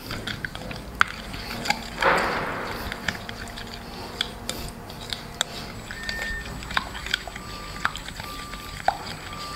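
Breadcrumbs rustle and crunch as a hand presses food into them.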